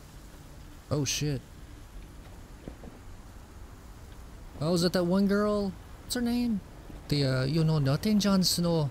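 A second man answers in a low voice.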